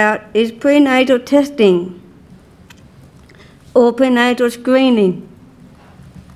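A woman speaks slowly and deliberately into a microphone, in short phrases with pauses.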